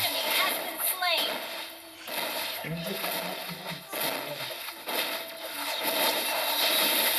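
Game spell blasts and weapon strikes clash in a fast battle.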